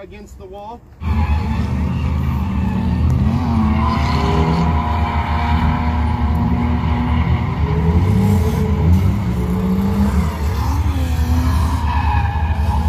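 Car engines rev and roar loudly.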